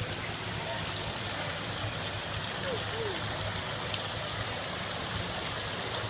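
Water trickles and splashes steadily nearby.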